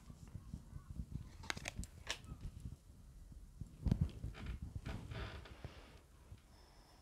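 Cards shuffle and slap softly on a table.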